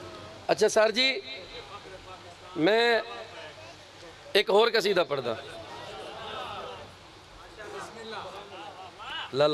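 A man recites loudly and with passion into a microphone, heard through loudspeakers outdoors.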